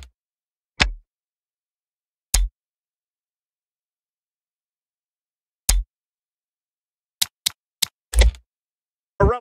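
Menu clicks sound in short, sharp bursts.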